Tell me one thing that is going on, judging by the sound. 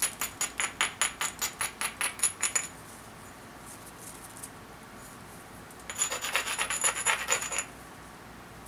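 A hammerstone rapidly scrapes and taps along the edge of a flint, in quick bursts.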